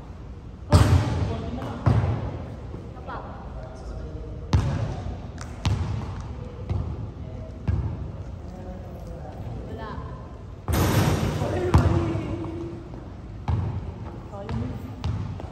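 A basketball bounces on a wooden floor, echoing through a large hall.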